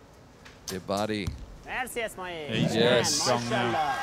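A bowstring snaps as an arrow is released.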